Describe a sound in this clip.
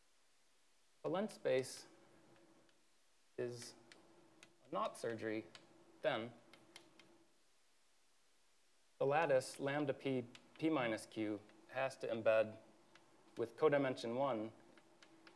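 A man speaks calmly and clearly through a microphone, pausing between phrases.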